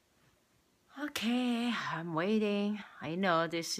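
A young person sings loudly and close up, with a wavering voice.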